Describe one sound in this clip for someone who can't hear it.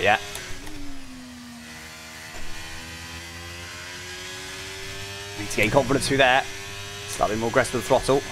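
A racing car engine whines steadily, rising and falling in pitch.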